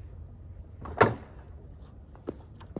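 A man climbs onto a motorcycle with a thump.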